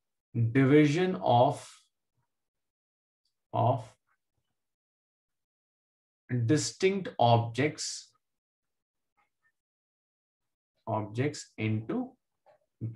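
A man speaks calmly and explains, heard close through a microphone, with pauses.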